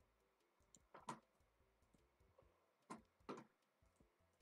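Wooden blocks break and get placed with short, dull knocks.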